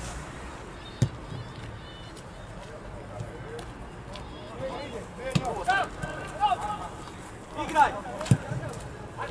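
A football is kicked with dull thuds now and then.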